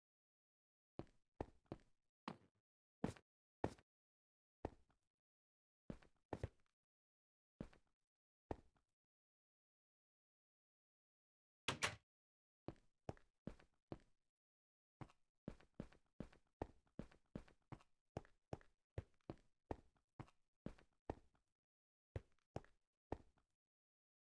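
Footsteps tap in short runs on a hard floor.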